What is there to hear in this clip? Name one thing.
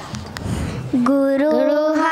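Children begin to sing together into microphones.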